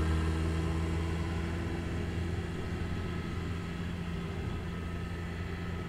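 A pickup truck's engine rumbles as the truck drives slowly away.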